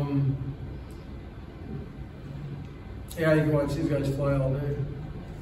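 An elderly man speaks calmly, a short distance away.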